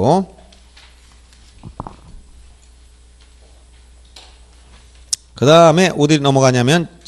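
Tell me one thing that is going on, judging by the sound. A middle-aged man speaks through a microphone, with long pauses.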